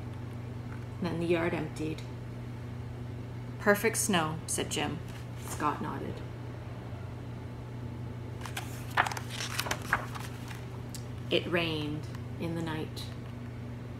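A woman reads aloud calmly and close by.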